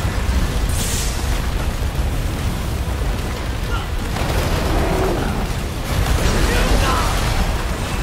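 Stone walls crumble and crash down in loud rumbling bursts.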